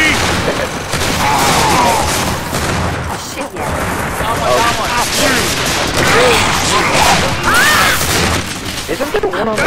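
Shotgun blasts boom at close range.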